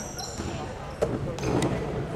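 A sharp hand slap rings out in an echoing gym.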